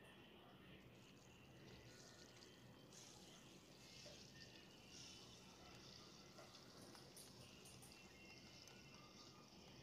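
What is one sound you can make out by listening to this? Oil sizzles and crackles gently in a pan.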